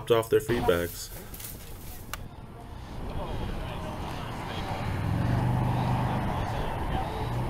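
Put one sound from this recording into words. Several men chat quietly outdoors in a group.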